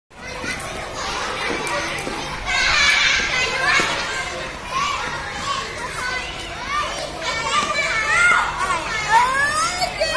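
Children chatter and shout all around outdoors.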